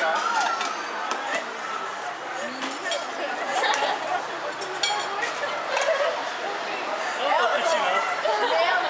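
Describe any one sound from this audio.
A crowd of young men and women chatters and laughs nearby.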